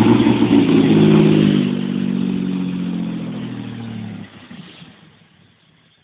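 A car engine rumbles loudly close by, then fades as the car drives away.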